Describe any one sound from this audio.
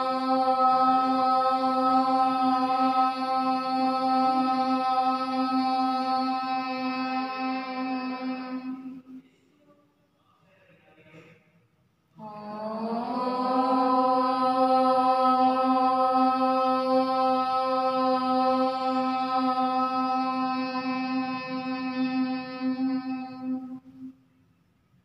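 A group of women chant a long, steady om in unison, pausing for a breath midway.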